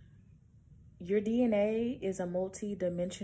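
A young woman speaks close to the microphone, in a drawn-out, sing-song way.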